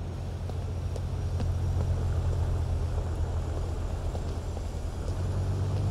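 A car engine rumbles low and steady nearby.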